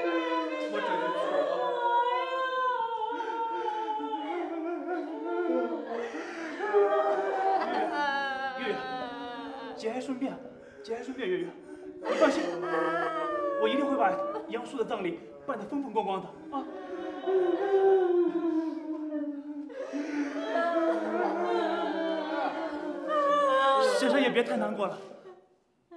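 A young man speaks earnestly, close by.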